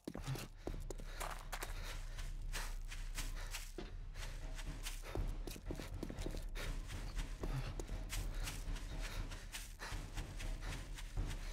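Footsteps crunch steadily over gravel and grass.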